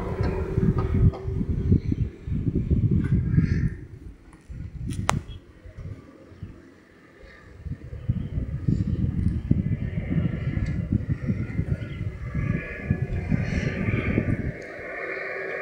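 Wind buffets loudly in strong, uneven gusts high up in the open air.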